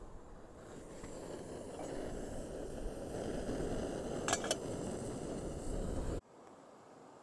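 A camping stove burner hisses and roars steadily.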